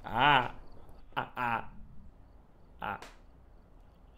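A young man exclaims loudly with animation into a microphone.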